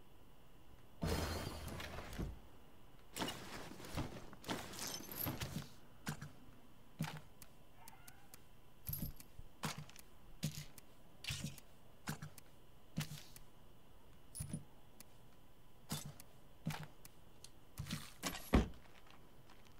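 Short interface clicks and thuds sound repeatedly.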